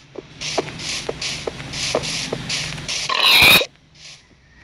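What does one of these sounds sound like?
A game axe strikes a pig with quick thuds.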